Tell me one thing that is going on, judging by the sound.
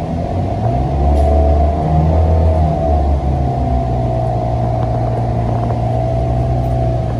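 A bus's motor whines, rising and falling in pitch.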